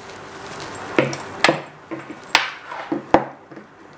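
Machine buttons click sharply several times.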